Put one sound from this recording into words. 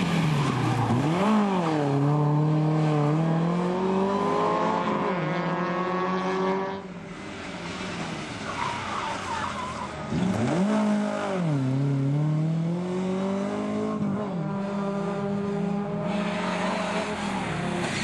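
Tyres screech on tarmac as a rally car corners.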